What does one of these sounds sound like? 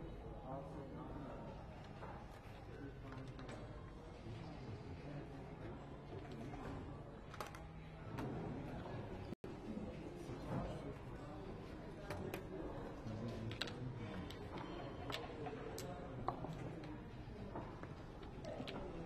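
Game checkers click and slide on a board.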